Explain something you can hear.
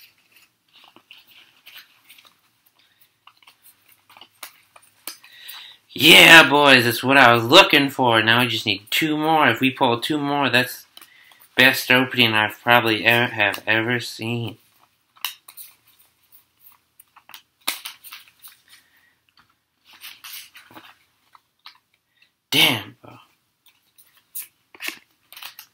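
Trading cards slide and shuffle against each other and a cloth playmat.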